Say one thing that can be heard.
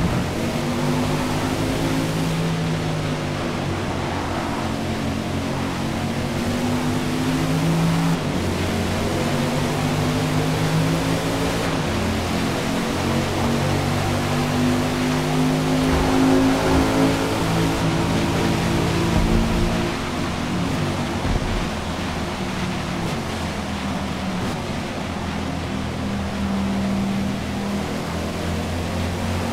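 A car engine roars steadily, rising and falling in pitch as it shifts gears.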